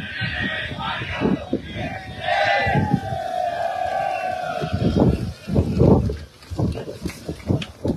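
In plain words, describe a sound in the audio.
Young men cheer loudly with raised arms.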